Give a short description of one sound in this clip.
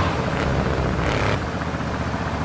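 Tyres screech as a car skids around a bend.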